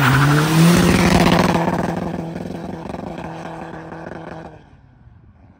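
A van engine revs hard as the van speeds away and fades into the distance.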